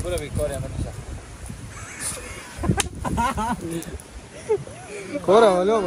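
Young men talk and laugh nearby outdoors.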